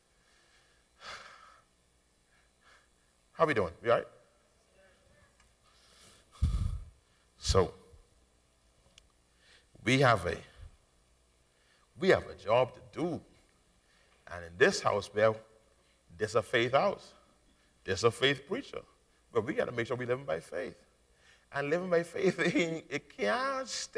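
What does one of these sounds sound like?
A man preaches through a microphone in bursts, pausing between phrases.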